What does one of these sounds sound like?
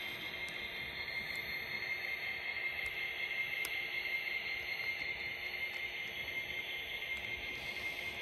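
Small train wheels click now and then over rail joints.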